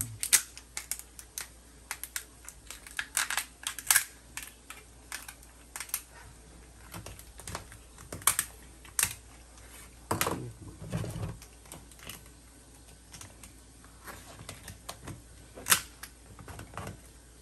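Shears snip and crunch repeatedly, close by.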